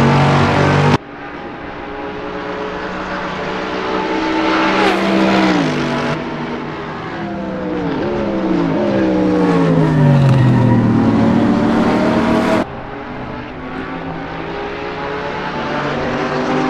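Several racing cars roar past one after another, their engines dropping in pitch as they go by.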